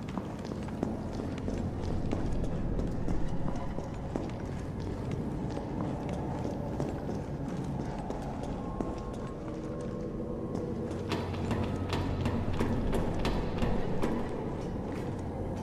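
Footsteps tread on a metal floor.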